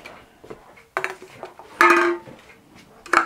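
An aluminium can clinks down onto a wooden board.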